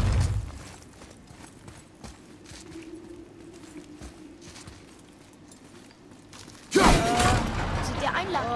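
Heavy footsteps thud on a wooden floor.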